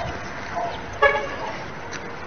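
A dog barks sharply nearby.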